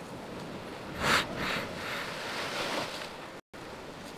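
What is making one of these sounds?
A wave bursts loudly against rocks.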